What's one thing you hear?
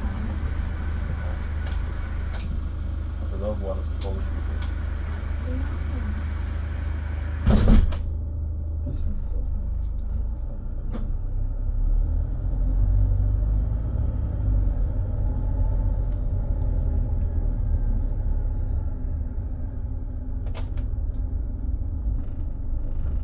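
A bus engine rumbles low and steady while driving.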